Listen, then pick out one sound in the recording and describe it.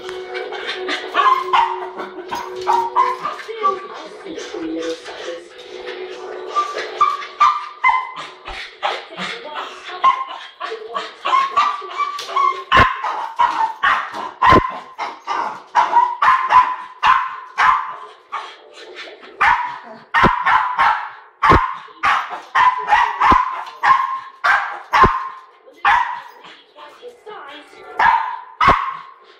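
A small dog barks excitedly and repeatedly, close by.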